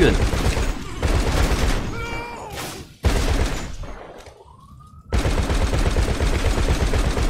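Heavy machine guns fire in rapid, booming bursts.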